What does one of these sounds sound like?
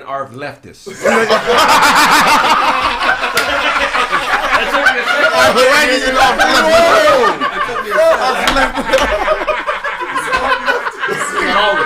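Several men laugh loudly together.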